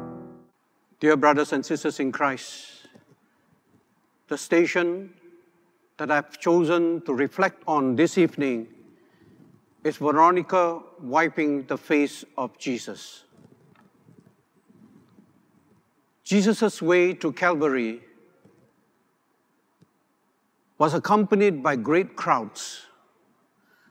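A middle-aged man speaks calmly and slowly into a microphone, with pauses.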